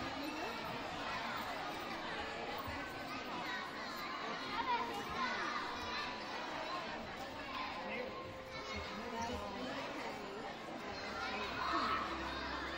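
A crowd of children and adults chatters throughout a large echoing gym.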